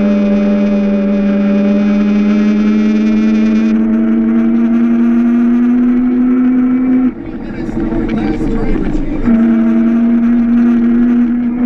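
A small go-kart engine whines steadily up close, easing off briefly before picking up again.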